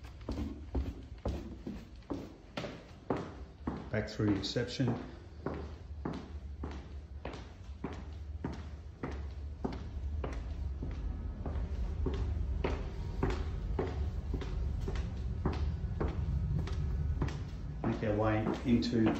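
Footsteps walk steadily on a hard tiled floor.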